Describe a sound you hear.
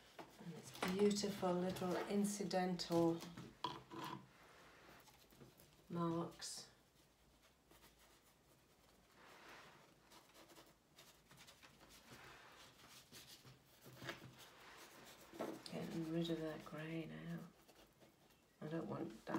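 A paintbrush dabs and scrapes softly on canvas.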